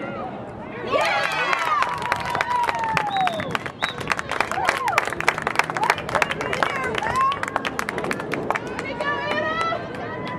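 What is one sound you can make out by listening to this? Lacrosse sticks clack against each other.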